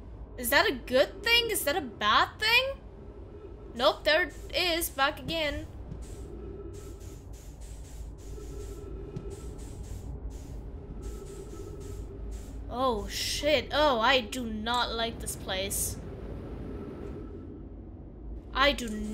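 A young woman speaks with animation, close to a headset microphone.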